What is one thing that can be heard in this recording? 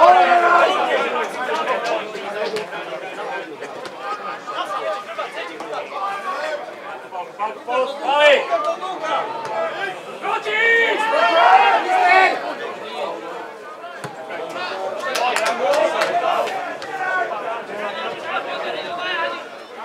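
Men and women talk and shout nearby.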